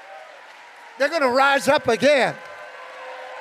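A middle-aged man shouts with passion through a microphone.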